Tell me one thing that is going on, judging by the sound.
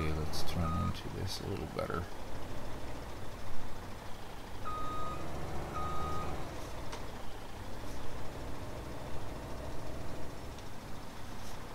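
A truck engine rumbles steadily as the truck drives slowly.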